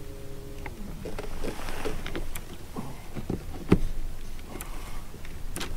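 Objects knock and clatter on a boat deck.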